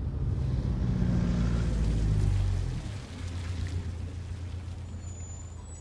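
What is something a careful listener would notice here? A van engine rumbles as the van drives away.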